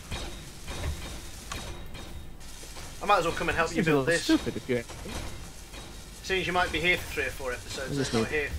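A welding tool hisses and crackles.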